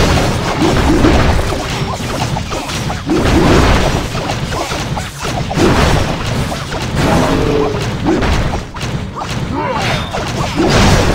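Cartoonish battle sounds crash and rumble.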